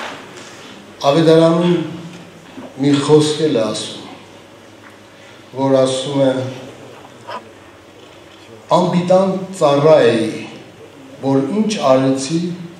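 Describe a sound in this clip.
An elderly man speaks slowly and calmly into a microphone in a large echoing hall.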